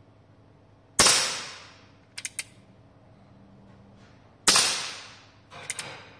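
A revolver fires loud shots that echo through a large hall.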